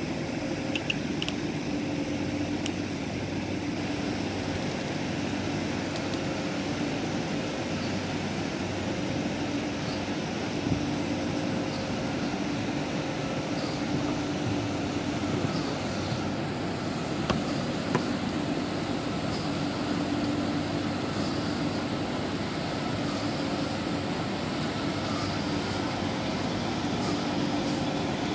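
A cleaning robot hums steadily.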